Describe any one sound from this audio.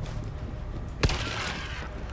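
A pistol fires a single sharp shot.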